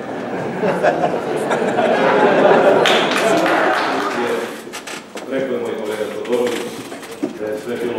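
A crowd of men and women chatter loudly all at once, close by.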